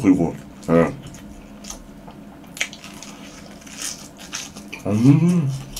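A young man chews and smacks his lips loudly.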